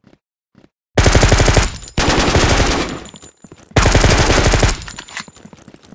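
A gun fires rapid loud bursts.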